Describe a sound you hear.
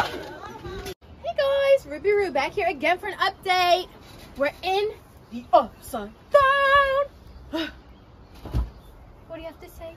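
A young woman sings with animation.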